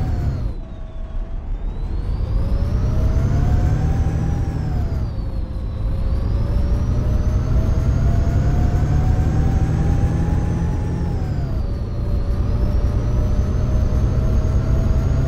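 A bus engine hums and whines, rising and falling in pitch as it shifts gears.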